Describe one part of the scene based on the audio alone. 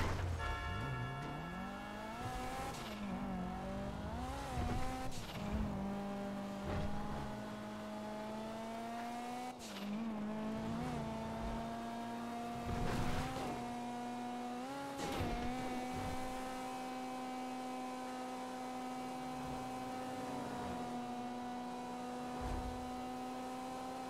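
A car engine hums and revs, rising and falling in pitch as the car speeds along a road.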